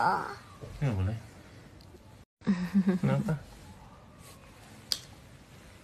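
A man kisses a child with soft smacking sounds.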